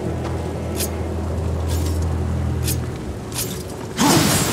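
Heavy footsteps clank on a stone floor.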